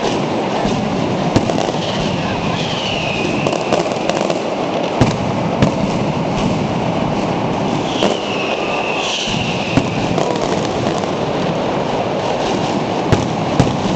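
Aerial fireworks burst with sharp bangs overhead.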